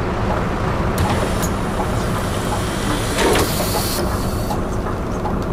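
Bus doors hiss shut with a puff of air.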